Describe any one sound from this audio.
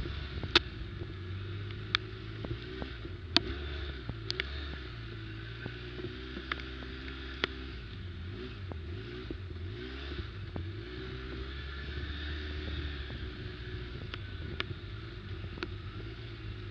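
Sharp knocks and rattles come from the bike's body over bumps.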